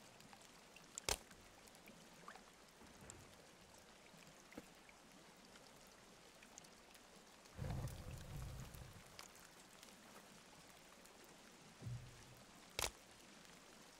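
A stick strikes a body with dull thuds.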